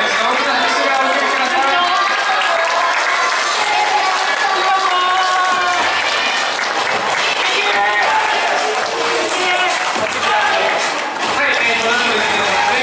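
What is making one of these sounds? Young women sing together into microphones over loudspeakers.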